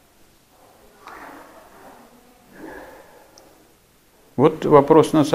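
An elderly man speaks calmly from across a quiet room.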